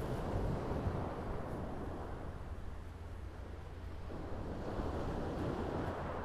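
Waves wash onto a pebble shore.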